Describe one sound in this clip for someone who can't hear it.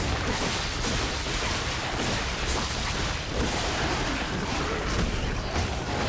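Metal weapons clash and clank in a fight.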